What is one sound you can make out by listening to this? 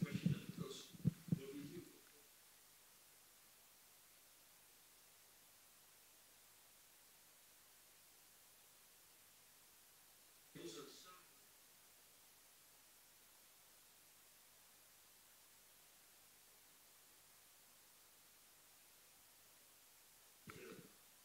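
A man speaks calmly into a microphone in a large hall, with long pauses.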